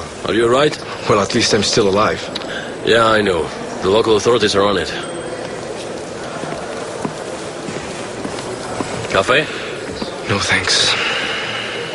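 A second young man answers calmly.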